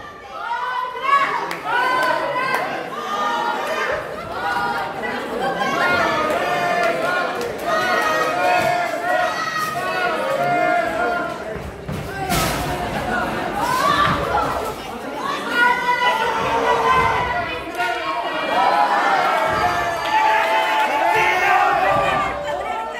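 A small crowd of men and women shouts and chatters close by in an echoing hall.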